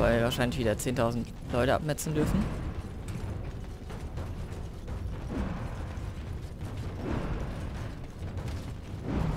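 Armoured footsteps run over stone.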